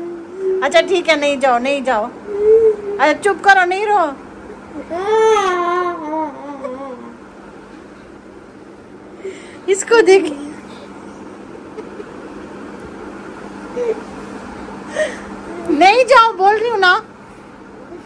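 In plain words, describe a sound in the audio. A young boy cries and wails loudly nearby.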